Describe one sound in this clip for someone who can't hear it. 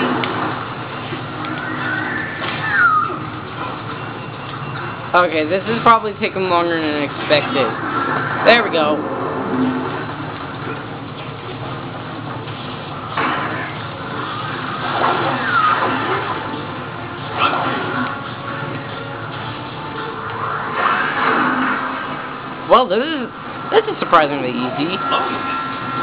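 Electronic game sounds whoosh and swoop from a television loudspeaker.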